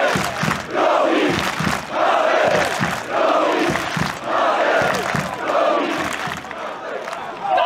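Players clap their hands in rhythm.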